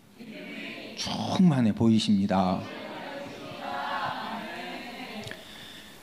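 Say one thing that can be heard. A congregation reads aloud together.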